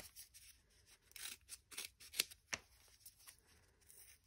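Scissors snip.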